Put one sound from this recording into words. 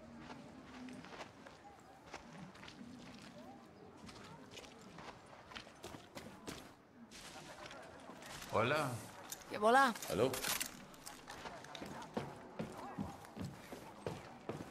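Footsteps tread steadily on dirt and then on metal stairs.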